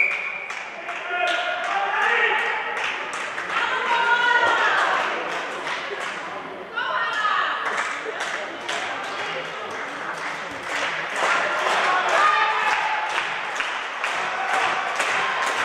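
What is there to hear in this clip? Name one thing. A ball bounces repeatedly on a hard floor in a large echoing hall.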